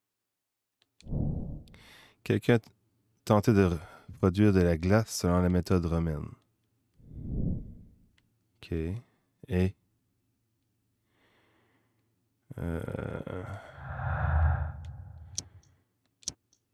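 A young man talks with animation close to a microphone.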